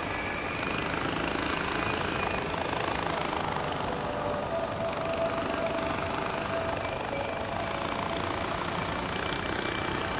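A zipline pulley whirs steadily along a cable.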